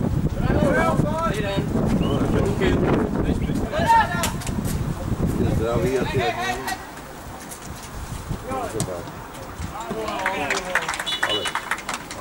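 Young men shout to each other across an open pitch outdoors.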